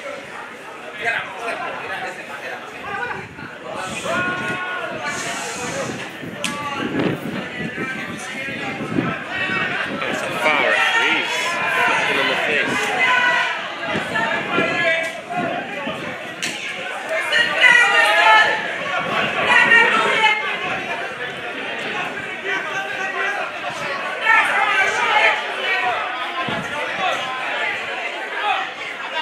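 Players shout to each other across a field in the distance.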